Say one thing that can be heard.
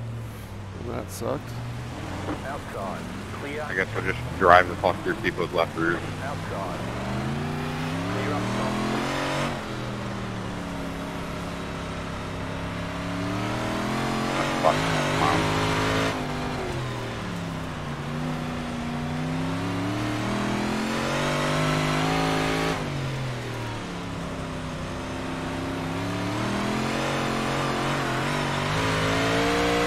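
A race car engine roars, rising and falling in pitch as it revs up and down.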